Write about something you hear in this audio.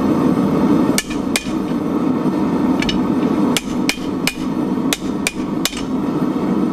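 A hammer rings sharply on metal against an anvil.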